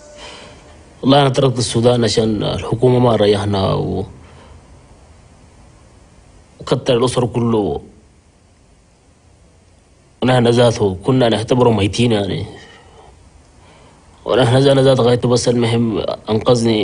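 A man speaks slowly and quietly close to a microphone, pausing between phrases.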